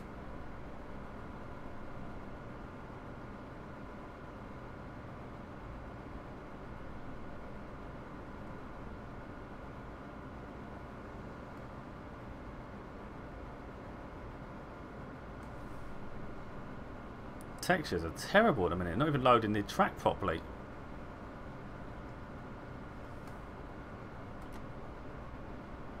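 A train's motor hums steadily.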